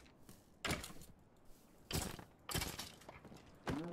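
Sword blows strike a rattling skeleton.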